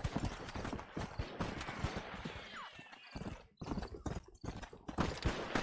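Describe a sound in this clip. Horse hooves thud rapidly on dry ground.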